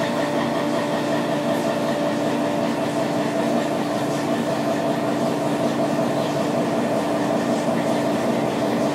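A milling machine cutter whirs steadily as it cuts metal.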